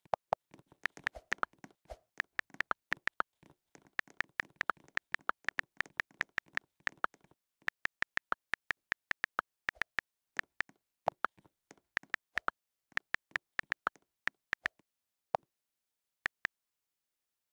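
Keyboard taps click rapidly and steadily.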